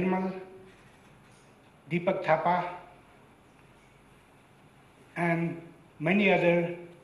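An elderly man speaks slowly and calmly through a microphone, with long pauses.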